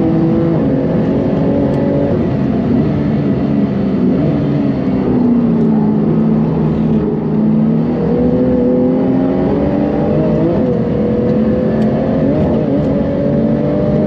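A car engine roars loudly, its pitch falling and rising as the driver brakes and accelerates.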